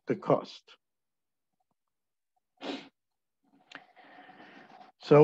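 A young man speaks calmly into a microphone in short bursts.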